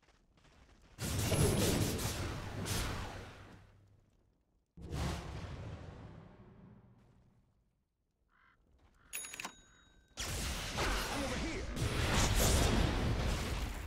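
Magic spells burst and crackle with loud booms.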